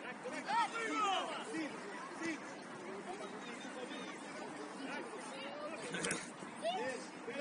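Children shout to each other across an open field.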